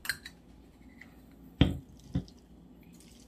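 A metal spoon clinks against a glass.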